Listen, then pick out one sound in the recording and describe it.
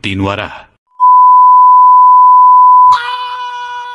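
A steady electronic beep sounds.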